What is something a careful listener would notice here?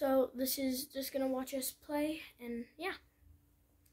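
A young boy talks close to a headset microphone.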